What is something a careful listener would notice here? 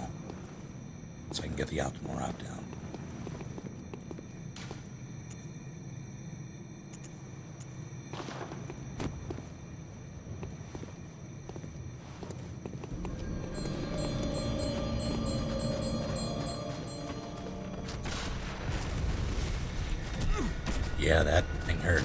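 Footsteps scuff on a stone floor.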